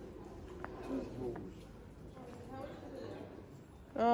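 People chatter faintly in a street.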